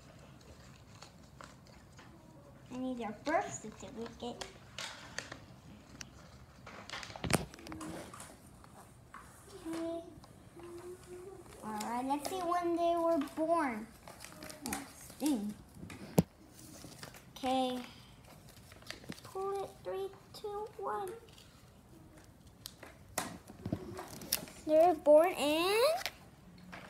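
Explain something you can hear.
Paper crinkles and tears in a child's hands.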